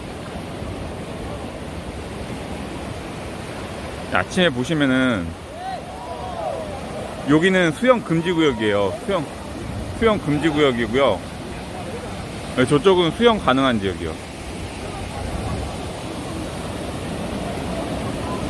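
Waves wash steadily onto a shore.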